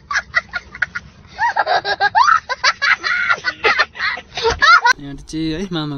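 A young child laughs loudly and excitedly nearby.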